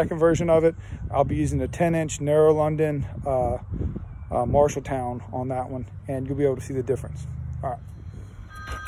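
A man talks calmly, close to the microphone.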